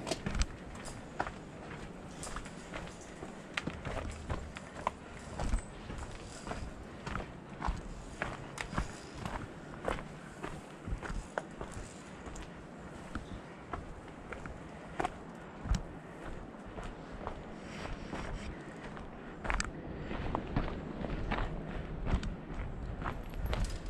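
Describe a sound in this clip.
Footsteps crunch on a dirt and gravel path.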